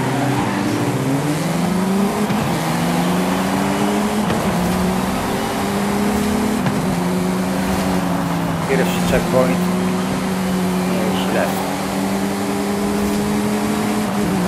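A buggy's engine roars and revs up through the gears.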